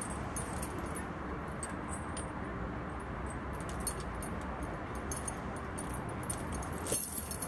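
Metal tyre chains clink and rattle.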